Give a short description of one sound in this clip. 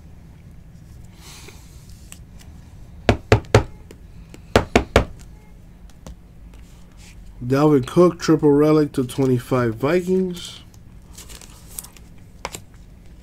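Cardboard trading cards rustle and click as hands sort through them.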